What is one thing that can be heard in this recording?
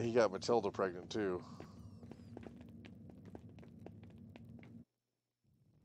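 Footsteps tap slowly on a stone floor.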